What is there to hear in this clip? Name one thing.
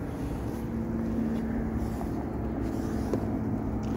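A small boat hull scrapes over grass as it is pulled ashore.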